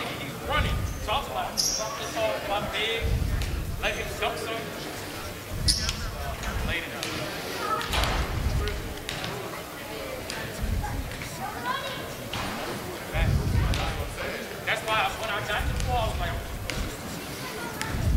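Young men talk and call out across the gym.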